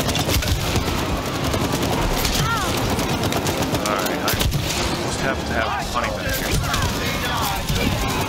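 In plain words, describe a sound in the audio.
Explosions burst with loud crackling blasts.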